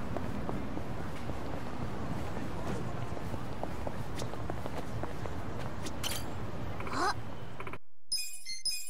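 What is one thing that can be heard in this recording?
A busy street murmurs steadily in the background.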